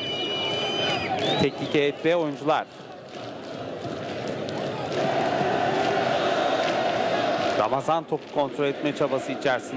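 A large crowd chants and roars outdoors.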